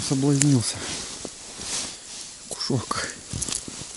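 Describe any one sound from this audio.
A small fish flaps and thumps against packed snow.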